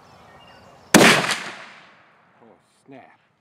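A rifle shot booms and echoes away outdoors.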